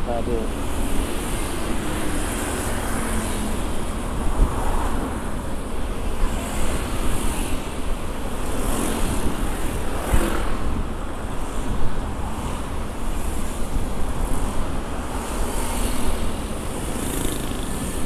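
An engine hums steadily while a vehicle drives along a road.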